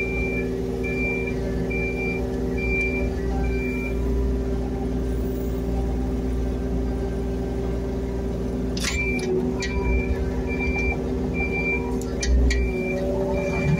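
A diesel engine hums steadily up close.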